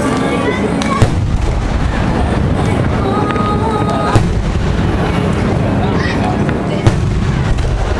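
Fireworks burst with loud booms.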